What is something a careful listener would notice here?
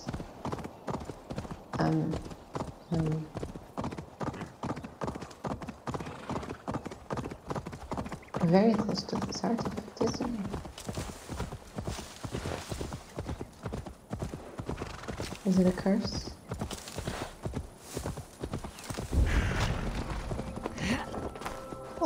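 A horse gallops with rapid, rhythmic hoofbeats on a dirt path.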